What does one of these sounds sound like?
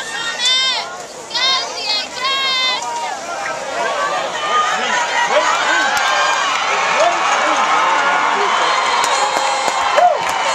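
Young men on the sideline shout and yell excitedly.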